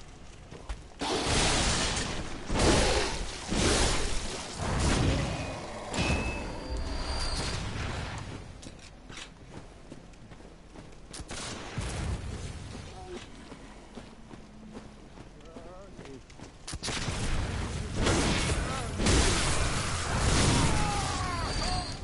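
Blades slash and strike in a close fight.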